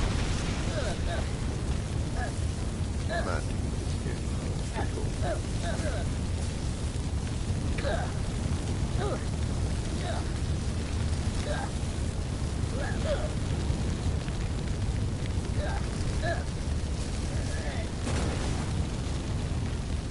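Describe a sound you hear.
Wood pops and snaps in the flames.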